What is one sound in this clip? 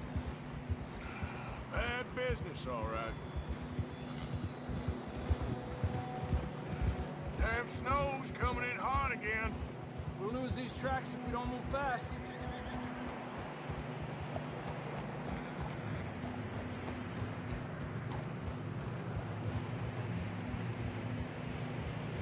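Horses' hooves thud steadily through snow.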